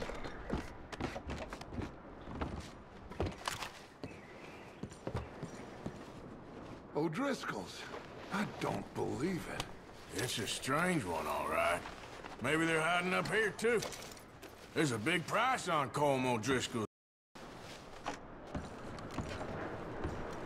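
Footsteps thud on wooden floorboards.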